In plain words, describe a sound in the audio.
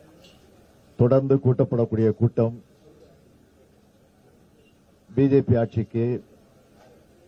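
A man speaks into a microphone in short bursts.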